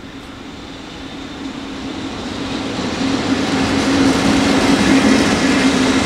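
Train wheels clatter and screech on the rails.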